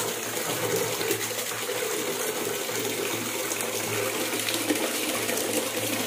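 Water from a tap splashes steadily into a bucket of water.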